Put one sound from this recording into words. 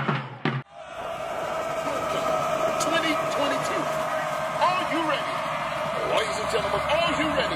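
A marching band plays loudly outdoors.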